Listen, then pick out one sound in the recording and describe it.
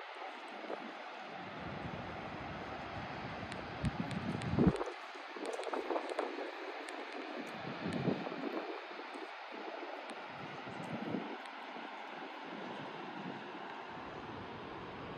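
Small waves lap softly at a stony shore.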